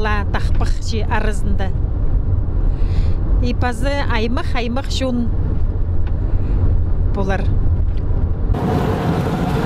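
A car engine hums steadily with road noise inside the car.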